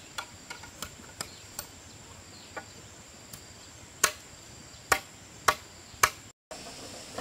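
A bamboo pole thuds into the ground again and again.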